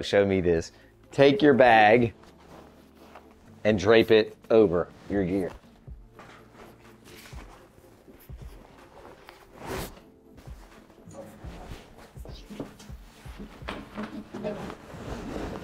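A fabric bag rustles and swishes as it is pulled over something.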